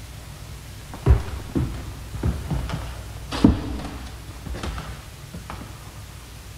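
Boots thud on a hard floor as a man walks.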